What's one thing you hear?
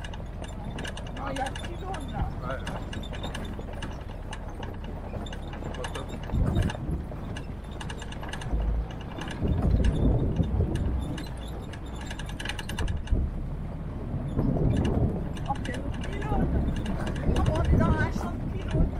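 An engine rumbles steadily as a vehicle drives slowly.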